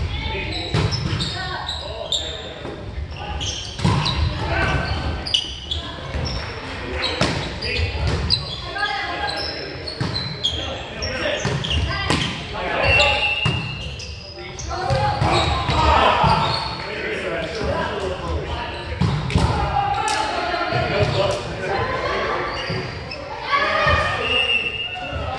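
Young men call out and shout to each other during play.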